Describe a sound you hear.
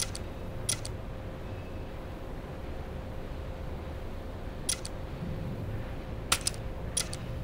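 Short game menu clicks sound a few times.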